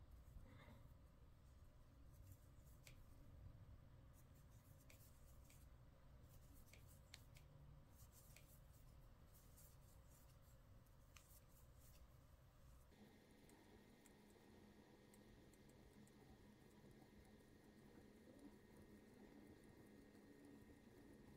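A metal crochet hook clicks softly as it pulls through yarn.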